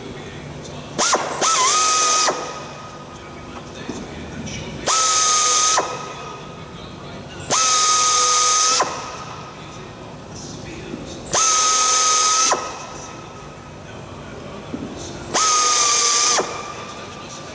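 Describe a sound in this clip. An air drill whines loudly in short bursts against metal.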